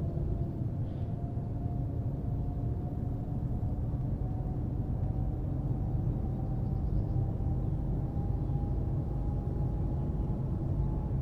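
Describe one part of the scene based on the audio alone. A bus engine hums steadily and slowly rises in pitch as it speeds up.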